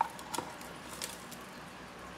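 A plastic cup clinks against a plastic tray.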